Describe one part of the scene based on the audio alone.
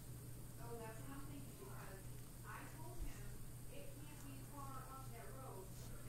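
A banana peel tears as it is pulled open.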